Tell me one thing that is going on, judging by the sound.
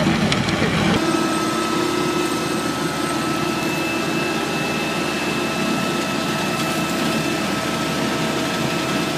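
The engine of a truck-mounted hedge cutter drones steadily.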